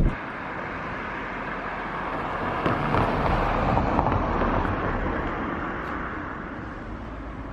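A car drives past on the street, its tyres swelling and fading.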